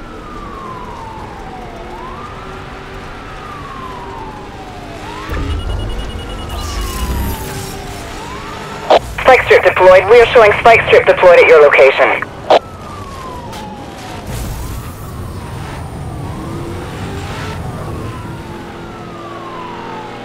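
A police siren wails up and down in a steady cycle.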